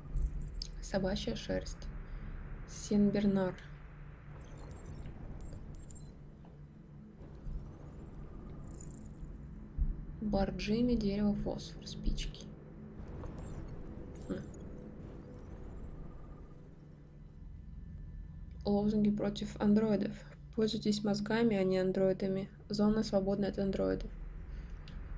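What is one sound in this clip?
A young woman talks into a microphone with animation, close by.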